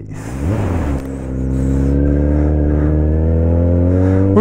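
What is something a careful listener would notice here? A motorcycle engine drones steadily as the bike rides along.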